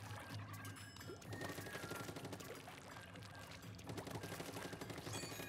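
Upbeat electronic game music plays with a steady beat.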